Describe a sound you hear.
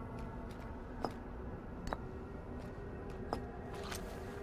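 Short bright chimes ring out now and then.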